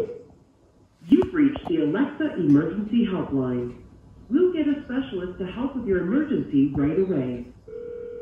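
A calm woman's voice answers through a small loudspeaker.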